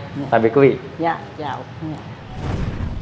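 A man greets cheerfully, speaking close by.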